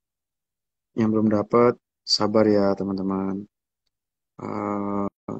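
A young man speaks calmly and close, as if into a phone microphone.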